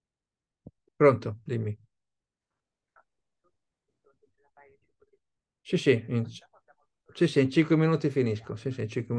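An elderly man speaks on a phone, heard close through a microphone in an online call.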